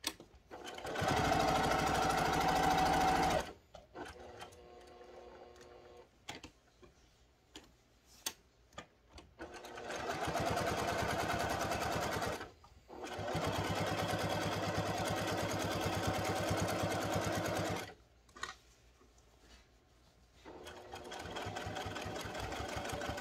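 A sewing machine stitches in fast, rattling bursts, stopping and starting again.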